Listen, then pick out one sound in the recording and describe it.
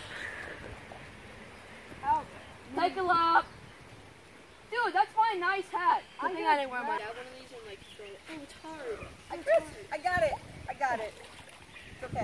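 Water splashes as a boy wades in a lake.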